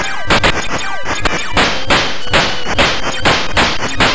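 A small electronic explosion bursts.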